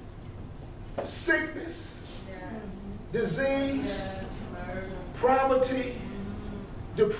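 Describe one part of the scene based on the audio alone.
A man preaches with animation in a room with a slight echo.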